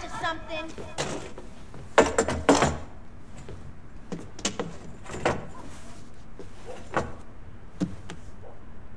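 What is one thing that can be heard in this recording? Wooden objects clatter and knock sharply.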